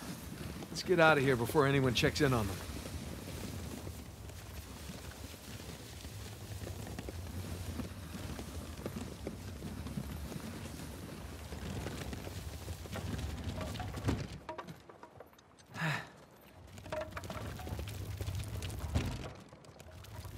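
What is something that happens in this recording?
A heavy crate scrapes as it is pushed across the ground.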